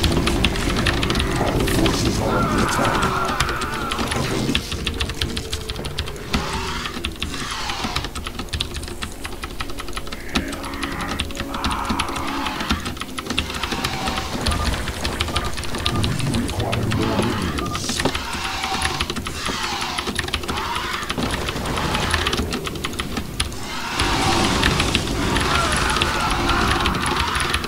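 Mouse clicks and keyboard taps come fast and steady.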